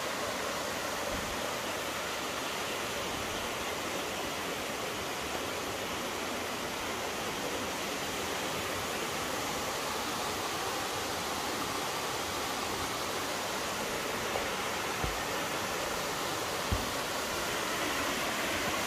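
A mountain stream rushes steadily over rocks.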